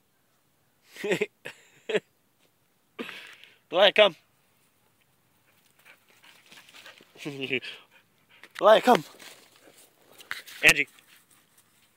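A dog barks loudly in short bursts.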